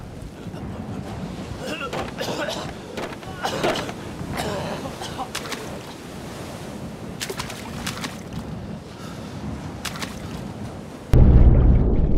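Hands scrape and rustle against rough rock close by.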